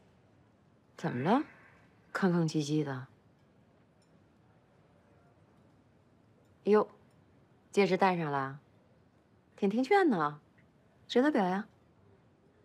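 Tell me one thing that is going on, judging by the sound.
A woman speaks calmly and then cheerfully, close by.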